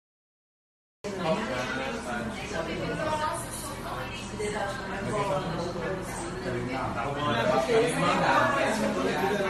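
A young woman sings through a television speaker.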